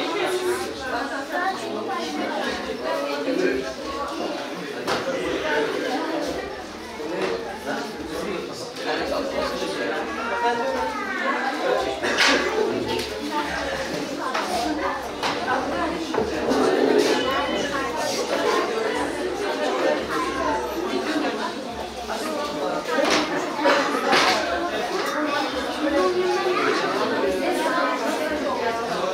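A woman speaks formally and steadily, close by.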